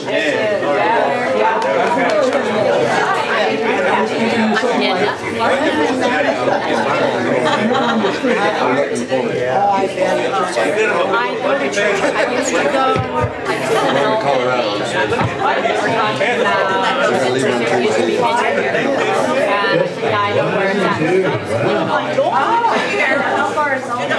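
Many adults chatter and talk at once in a room with some echo.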